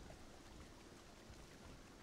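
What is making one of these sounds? Water splashes softly around a wading swimmer.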